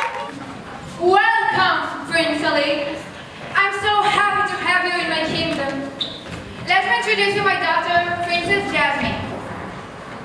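A group of girls sings together in a large hall.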